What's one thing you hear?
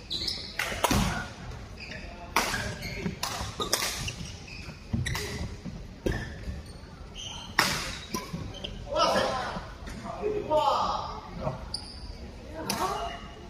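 Badminton rackets smack shuttlecocks in a large echoing hall.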